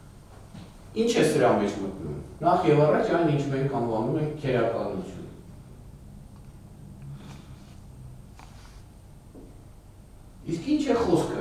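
An older man speaks calmly into a microphone.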